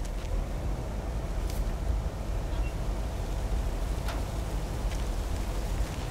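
A metal mailbox lid clanks open and shut.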